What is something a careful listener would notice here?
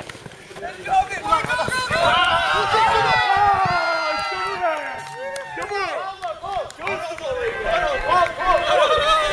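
Several men cheer and shout loudly outdoors.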